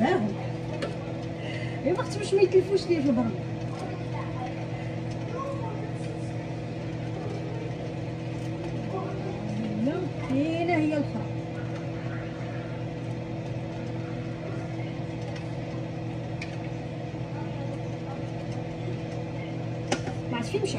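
An exhaust fan hums steadily.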